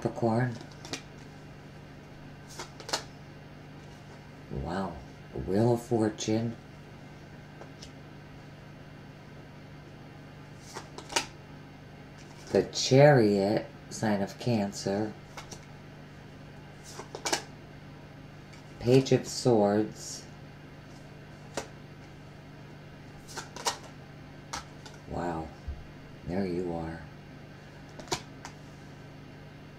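Playing cards shuffle and tap softly as they are laid down one by one.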